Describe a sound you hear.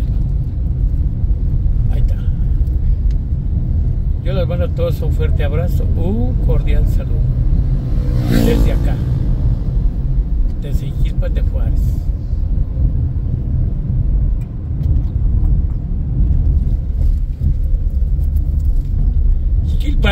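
A car engine hums with a steady low rumble of tyres on the road.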